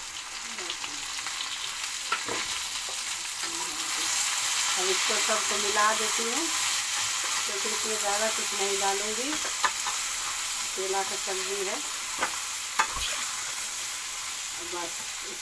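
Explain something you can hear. A metal spatula scrapes and knocks against a pan.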